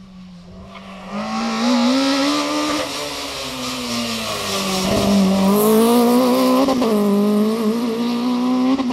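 A third rally car engine approaches loudly, revving, and speeds off.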